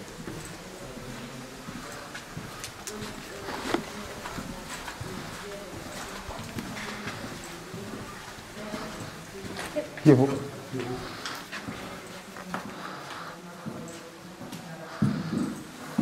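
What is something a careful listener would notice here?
Young women talk quietly nearby.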